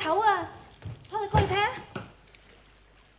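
A young woman speaks in a high, lively voice.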